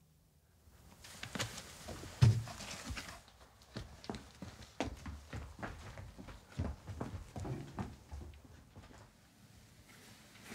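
People shuffle and scuffle on a wooden floor.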